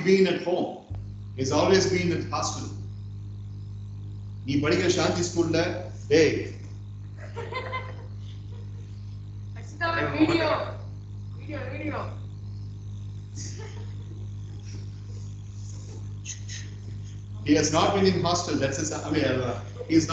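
A man speaks calmly through an online call microphone.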